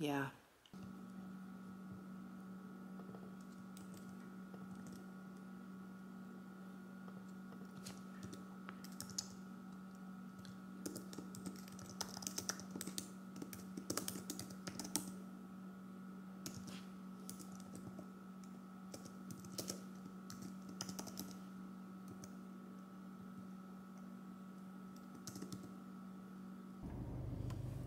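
Fingers tap quickly on a keyboard with light clicks.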